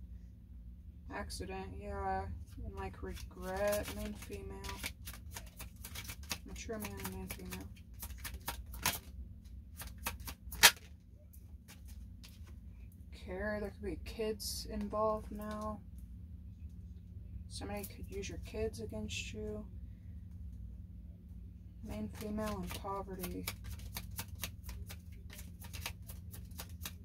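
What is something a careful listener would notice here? Playing cards are shuffled with soft flicking clicks.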